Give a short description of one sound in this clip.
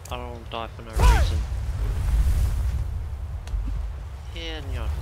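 Ice shatters with a loud crash.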